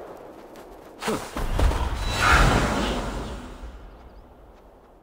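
Wind rushes loudly past, sweeping leaves through the air.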